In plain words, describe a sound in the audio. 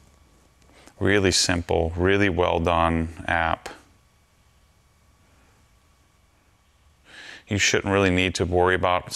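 A man speaks calmly and close up, in two bursts with a pause between them.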